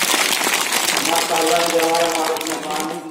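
A man speaks through a loudspeaker outdoors.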